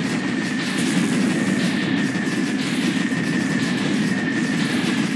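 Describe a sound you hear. Rapid gunfire blasts without a break from a game.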